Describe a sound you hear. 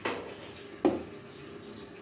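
Water pours onto leaves in a metal pot.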